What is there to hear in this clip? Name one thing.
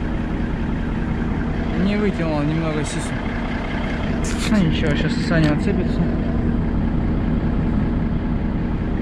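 A heavy truck engine drones steadily.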